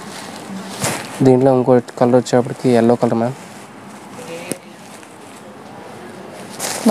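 Fabric rustles as cloth is handled and folded.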